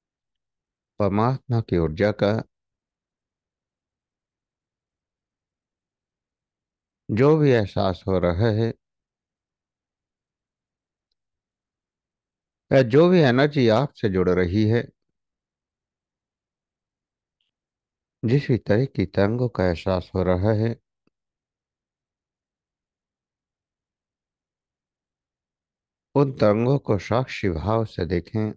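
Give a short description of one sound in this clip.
An older man speaks calmly in short phrases over an online call, with long pauses between.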